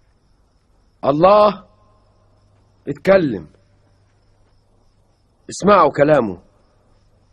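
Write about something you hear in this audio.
A man speaks slowly and solemnly in short, separate phrases.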